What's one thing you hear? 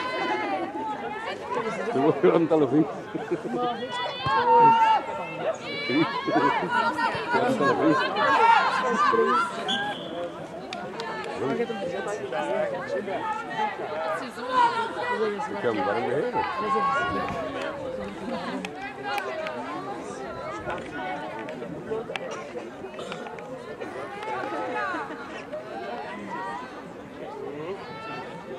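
Adults close by talk and shout encouragement outdoors.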